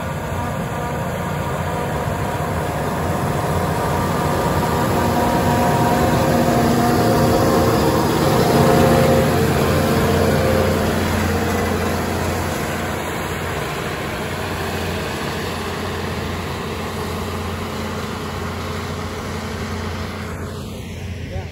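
A harvester engine drones loudly close by, growing louder as it passes and then fading away.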